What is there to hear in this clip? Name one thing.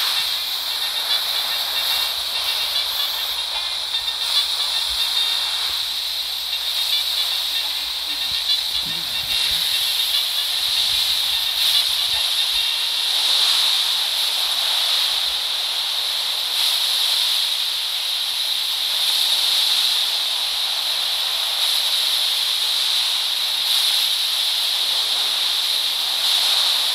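Sea water washes steadily against a large ship's hull.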